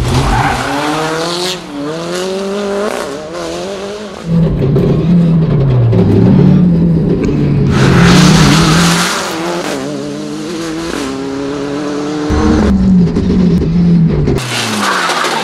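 Tyres scrub and screech on asphalt.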